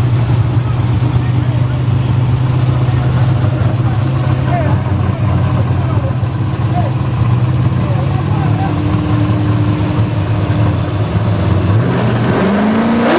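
Loud car engines idle with a deep rumble.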